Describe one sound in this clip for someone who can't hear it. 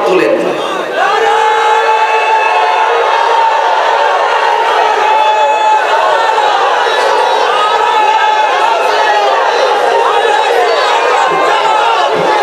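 A large crowd chants and sings loudly together outdoors.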